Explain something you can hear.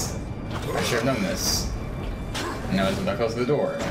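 Heavy metal doors grind open.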